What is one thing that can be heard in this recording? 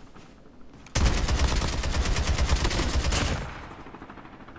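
Rapid gunfire rattles in a fast burst.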